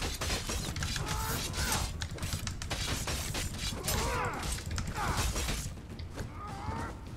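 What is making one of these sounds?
Swords clash and strike in quick, sharp blows.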